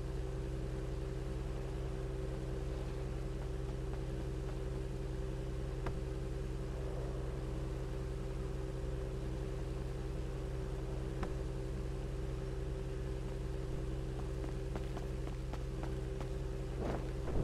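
A sports car engine idles with a steady low hum.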